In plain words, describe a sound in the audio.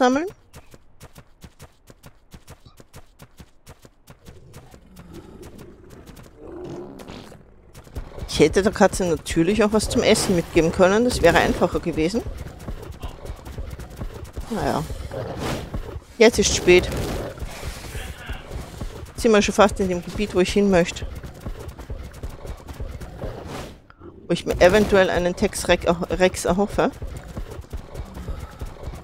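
Heavy feet thud steadily on the ground as a large creature runs.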